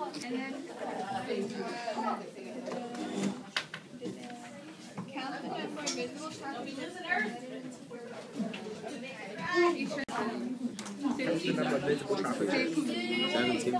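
Several young people talk and chatter close by in a busy, lively room.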